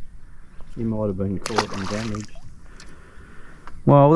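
A fish splashes into water.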